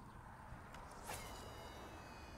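A fishing rod swishes through the air as it is cast.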